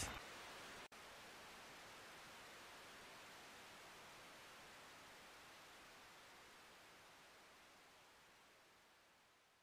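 Loud static hisses steadily, then slowly fades.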